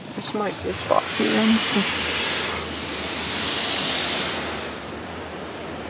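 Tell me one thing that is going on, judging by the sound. Water jets spray hard against a car's windows with a loud rushing hiss.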